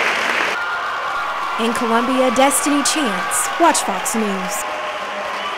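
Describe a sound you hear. People in a crowd cheer and shout.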